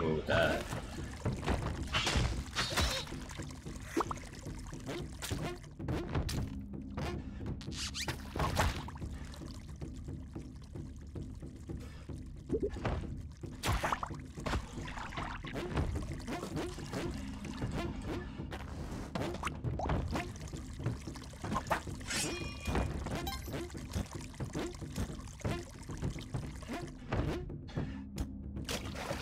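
Video game sound effects blip and thud as a character jumps and attacks.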